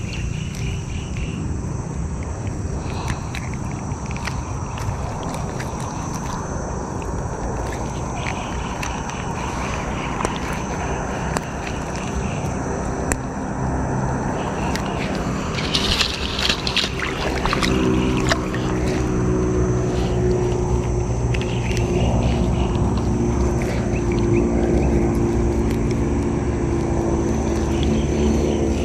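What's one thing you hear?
Water splashes and sloshes as hands work in shallow water.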